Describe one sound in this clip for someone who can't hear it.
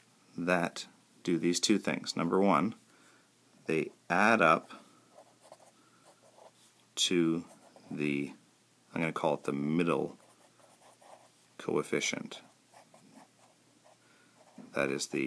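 A marker squeaks and scratches softly on paper.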